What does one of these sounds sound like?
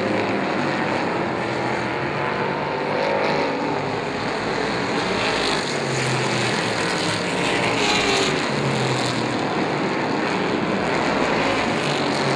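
Race car engines roar loudly as the cars speed around a track.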